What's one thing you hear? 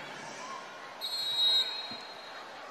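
A referee's whistle blows once, short and shrill.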